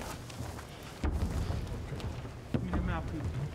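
A man talks quietly up close in a boxer's corner.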